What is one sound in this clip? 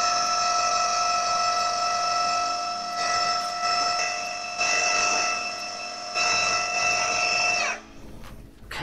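A food processor whirs loudly and steadily, chopping food.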